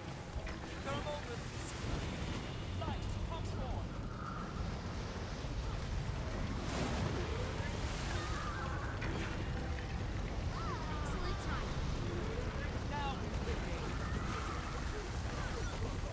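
Game combat sounds whoosh and crackle with spell effects.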